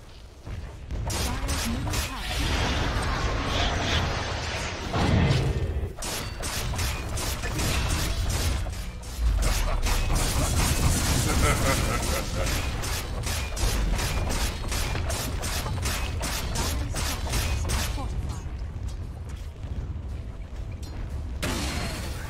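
Fantasy battle sound effects crackle, clash and boom in quick bursts.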